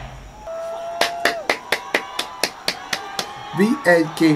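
A young man claps his hands in quick rhythm.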